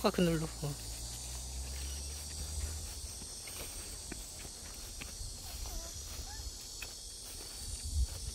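Small footsteps pad on grass.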